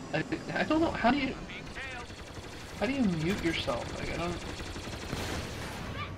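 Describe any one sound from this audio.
Laser blasts fire in quick bursts.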